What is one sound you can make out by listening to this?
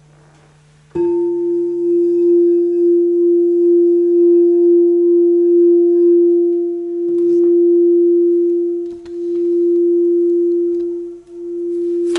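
A singing bowl rings with a steady, humming tone.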